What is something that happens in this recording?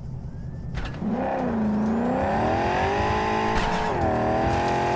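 A car engine hums and slowly revs up.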